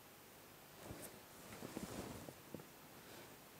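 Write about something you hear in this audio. A plastic set square slides across paper.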